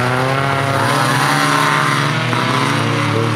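A rally car engine roars loudly close by.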